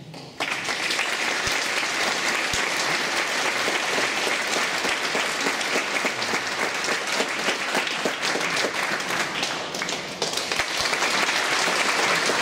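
A large audience applauds in a big echoing hall.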